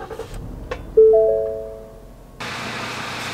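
A car's dashboard chime rings out with a few short tones.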